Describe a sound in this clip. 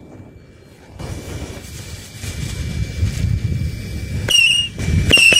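A lit fuse hisses and sprays sparks.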